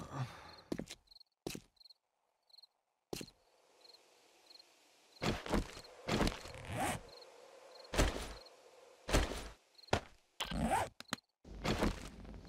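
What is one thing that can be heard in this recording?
Blocks thud into place with sharp knocks.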